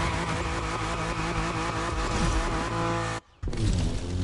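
A car engine revs hard.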